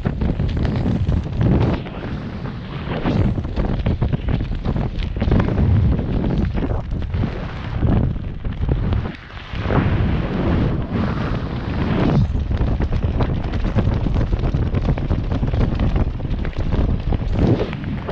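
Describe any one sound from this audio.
Strong wind roars and buffets loudly against a microphone.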